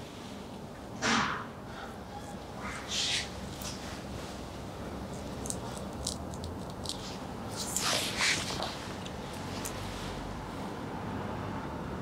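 A straight razor scrapes softly across stubble.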